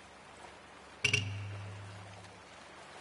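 A fish splashes sharply at the surface.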